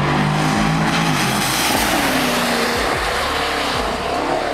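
Tyres hiss through water on a wet track.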